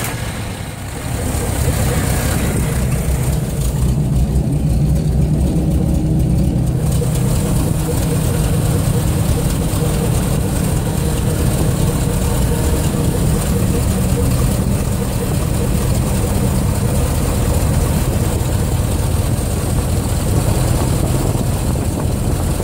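A combine harvester's V8 petrol engine idles after a cold start.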